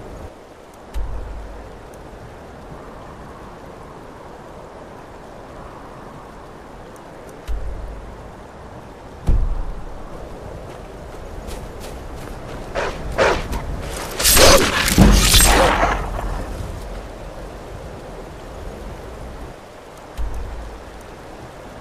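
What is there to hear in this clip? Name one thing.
A low whoosh sounds several times.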